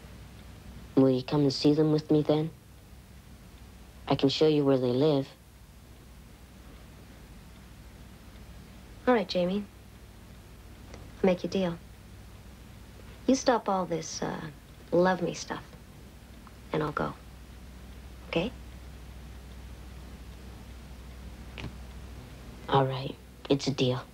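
A teenage boy speaks calmly, close by.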